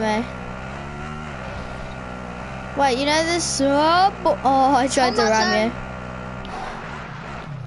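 A quad bike engine hums steadily as it drives over rough ground.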